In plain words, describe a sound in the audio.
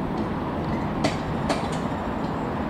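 A chairlift clanks and rattles as it passes a pylon.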